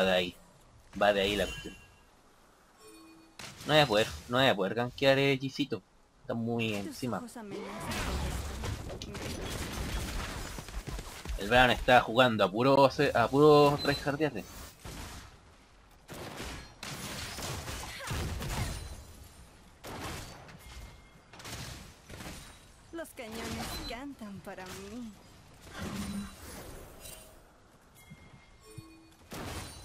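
Video game combat effects clash, zap and thud.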